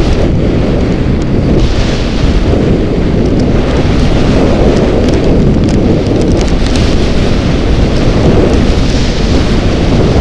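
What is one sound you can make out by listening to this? Strong wind roars loudly across a microphone.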